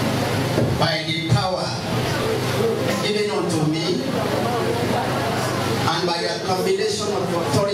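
A second man speaks into a microphone, heard through loudspeakers.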